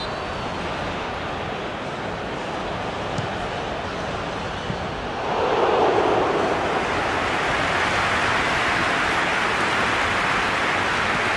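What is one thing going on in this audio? A large crowd roars steadily in a stadium, swelling louder partway through.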